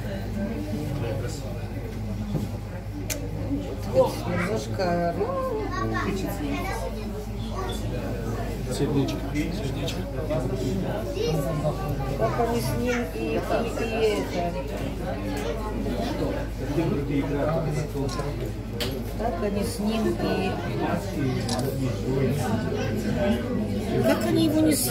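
Adult passengers talk among themselves nearby, in a small enclosed space.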